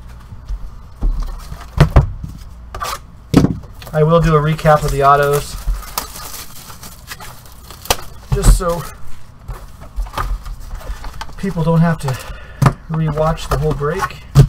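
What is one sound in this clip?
Cardboard boxes knock and scrape as hands handle them.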